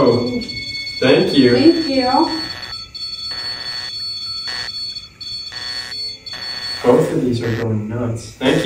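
A man speaks in a low voice in a small echoing room.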